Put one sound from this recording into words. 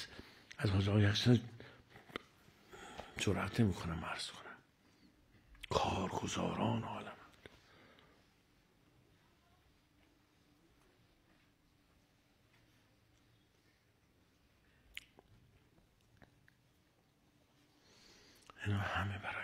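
An elderly man speaks slowly and with feeling into a microphone, with long pauses.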